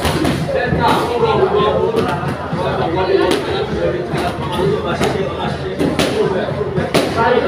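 Feet shuffle on a canvas mat.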